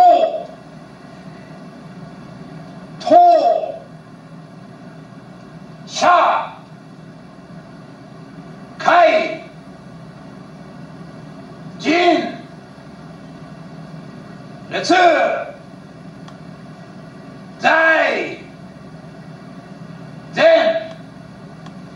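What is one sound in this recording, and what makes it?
A man shouts short, sharp calls at regular intervals in an echoing room.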